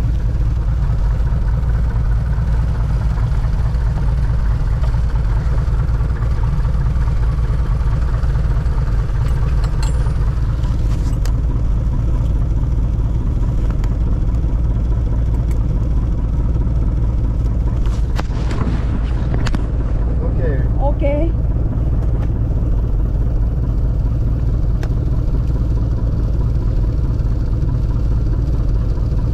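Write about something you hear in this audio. A bus engine rumbles low and steadily throughout.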